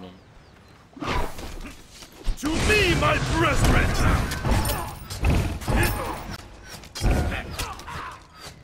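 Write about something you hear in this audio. Magic blasts and weapon clashes of a fight burst out in quick succession.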